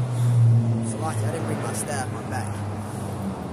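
A man speaks close by, outdoors.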